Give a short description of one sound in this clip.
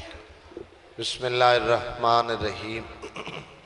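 A man recites melodically into a microphone, heard through loudspeakers.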